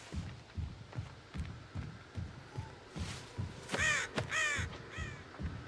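Heavy footsteps tramp steadily through grass.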